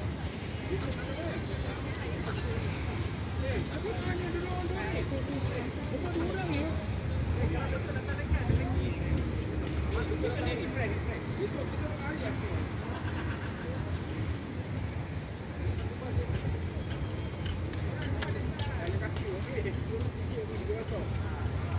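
Passersby talk outdoors along a walkway.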